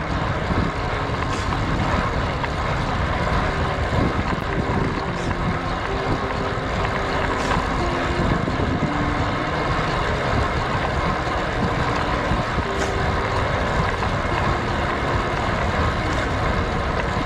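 Wind rushes loudly past a moving cyclist.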